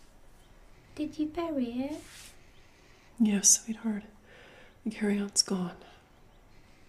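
A woman speaks softly and calmly nearby.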